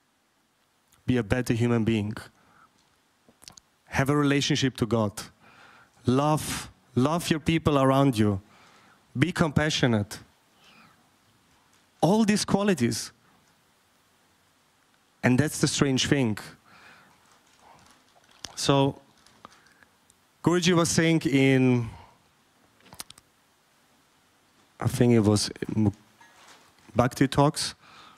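A man speaks calmly and expressively into a microphone, in short phrases with pauses.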